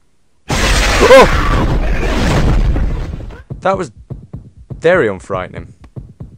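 A young man talks loudly into a microphone with excitement.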